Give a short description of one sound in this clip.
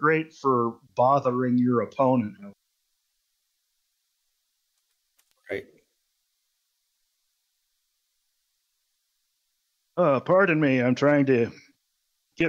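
A man talks with animation over a microphone, heard as if through an online call.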